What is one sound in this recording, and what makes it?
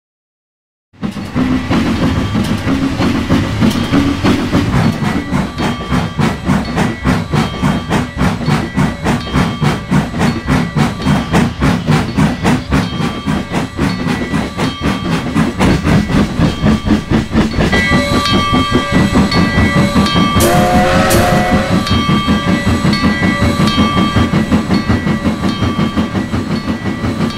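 A steam locomotive chuffs steadily in a fast, even rhythm.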